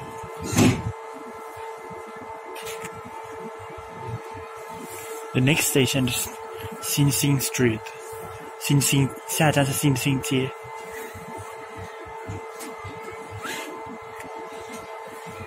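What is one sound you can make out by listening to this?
A subway train carriage hums steadily.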